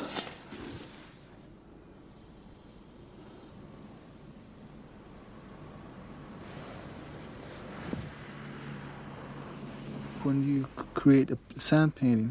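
Fingers rub and sprinkle dry sand softly.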